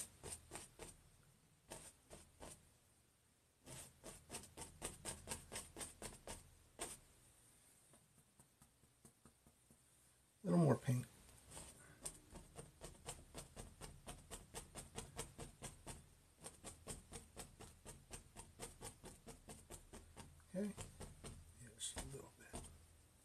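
A brush taps and dabs rhythmically on a canvas.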